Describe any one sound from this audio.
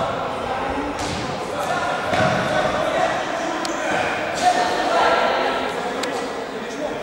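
A ball thuds as it is kicked.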